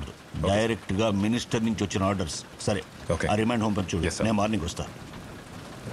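A middle-aged man speaks firmly to another man.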